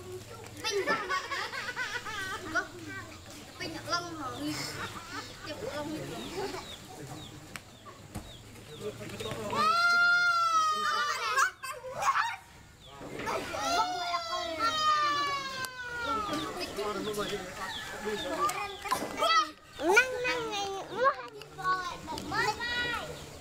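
Children shout and chatter close by outdoors.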